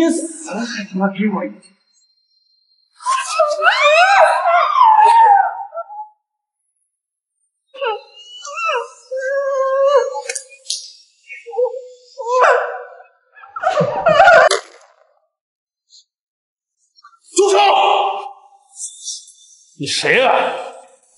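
A young man speaks roughly, close by.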